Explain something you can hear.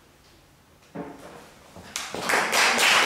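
A piano plays a chord that rings out in a large echoing hall.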